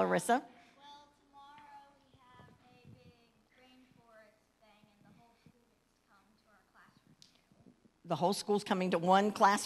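An elderly woman speaks calmly into a microphone, heard through loudspeakers.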